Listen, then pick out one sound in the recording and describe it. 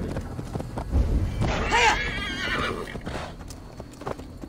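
A horse's hooves thud steadily on soft ground.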